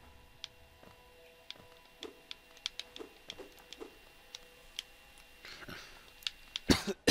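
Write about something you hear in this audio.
Light footsteps patter quickly on a hard floor.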